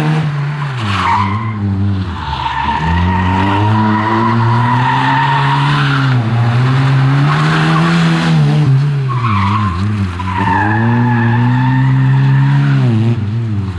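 Tyres squeal on asphalt as a rally car corners.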